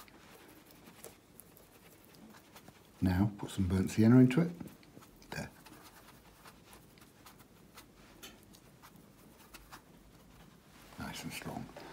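A paintbrush dabs and swishes in wet paint.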